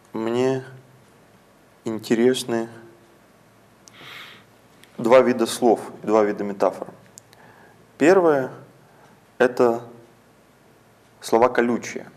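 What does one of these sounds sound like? A young man speaks calmly and haltingly into a close microphone.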